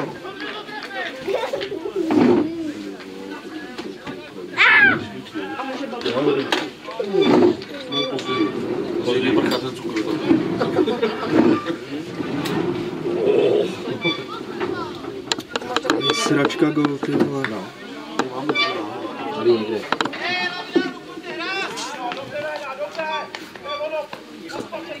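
Men and women talk nearby outdoors.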